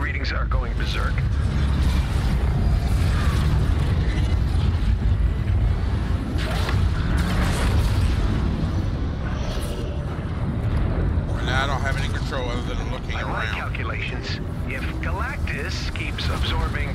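Electric energy beams crackle.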